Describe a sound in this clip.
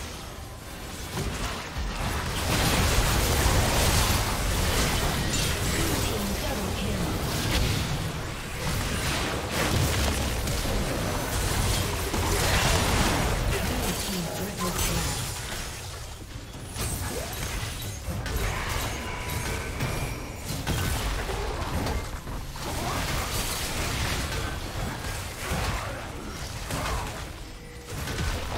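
Spell blasts, swooshes and impacts from a fast fantasy battle crash over and over.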